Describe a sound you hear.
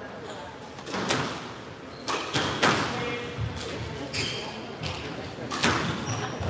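A squash ball smacks off rackets and walls with a sharp echo.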